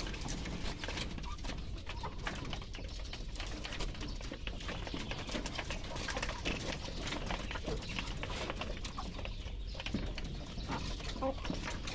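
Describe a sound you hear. Many chickens peck rapidly at a hard floor, tapping and clicking.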